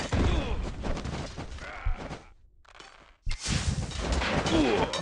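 Weapons clash and thud in a busy battle.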